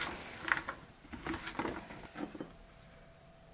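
A spoon scrapes and clinks against a dish.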